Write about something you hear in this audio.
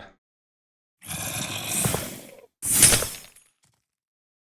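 A magic spell bursts with a whooshing crackle.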